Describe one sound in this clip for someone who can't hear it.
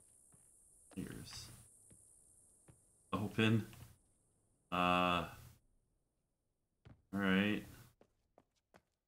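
A man speaks in short bursts into a close microphone.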